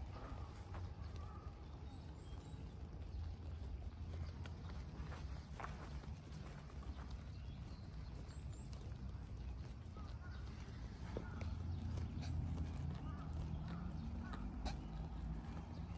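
Deer tear and chew grass nearby, outdoors.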